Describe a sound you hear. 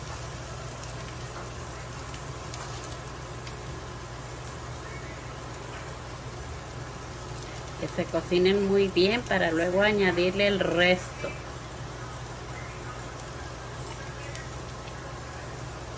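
Chopped vegetables slide off a cutting board into a pan.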